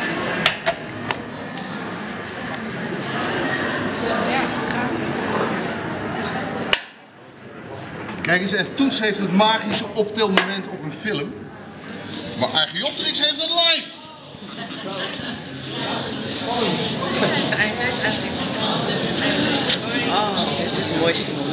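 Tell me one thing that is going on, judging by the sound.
Men and women chatter nearby in an echoing room.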